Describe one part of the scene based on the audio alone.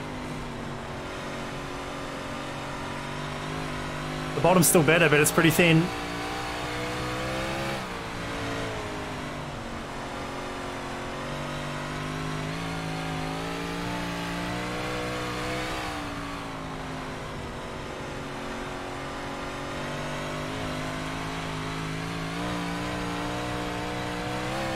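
A racing engine drones steadily, rising and falling in pitch as it revs.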